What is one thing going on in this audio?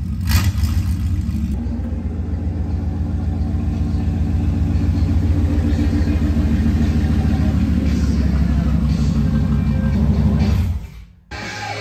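A pickup truck engine rumbles as it pulls in slowly.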